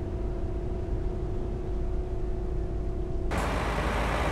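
A bus engine hums steadily from inside the cab.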